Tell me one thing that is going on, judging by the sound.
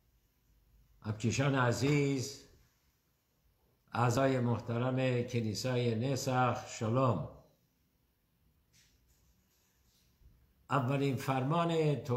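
An elderly man speaks calmly and closely, with pauses.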